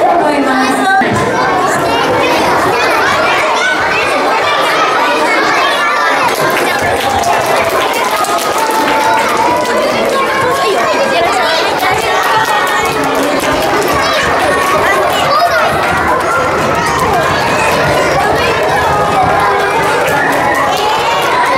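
A crowd of young children chatter and shout excitedly.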